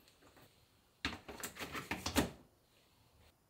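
A plastic lint filter rattles and scrapes as it is pulled out of a dryer.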